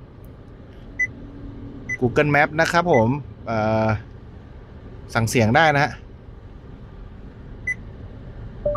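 A touchscreen gives short soft beeps as it is tapped.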